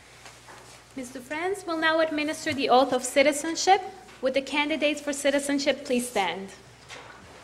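A woman sings through a microphone in an echoing hall.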